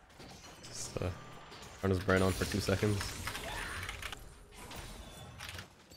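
Video game blows and spell effects clash in a battle.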